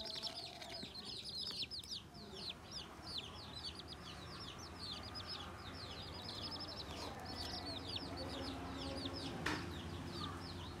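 Newly hatched chicks peep rapidly and continuously close by.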